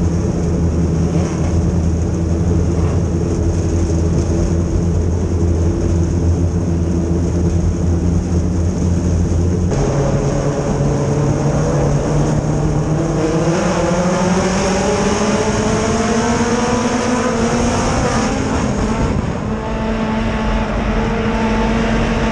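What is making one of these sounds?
A race car engine roars loudly up close, rising and falling in pitch as it revs.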